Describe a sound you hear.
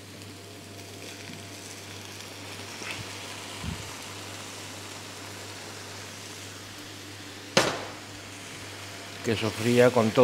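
Chopped vegetables sizzle gently in a frying pan.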